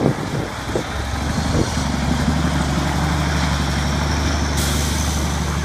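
A truck's air horn blares loudly and steadily.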